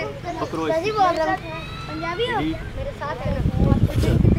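A man speaks calmly to children.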